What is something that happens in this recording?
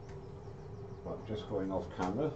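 An older man speaks calmly, close to the microphone.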